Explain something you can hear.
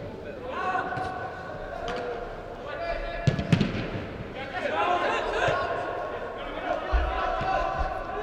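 Young women shout to each other across a large echoing hall.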